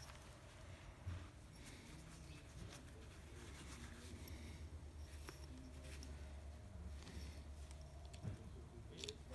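Sandpaper rustles and crinkles in someone's hands, close by.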